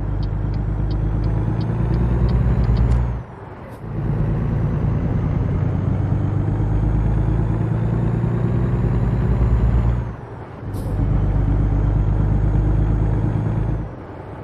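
A heavy truck engine rumbles loudly, dropping briefly as gears change.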